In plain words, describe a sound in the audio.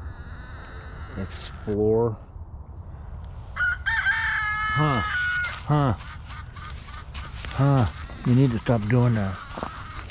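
A dog sniffs around in dry grass.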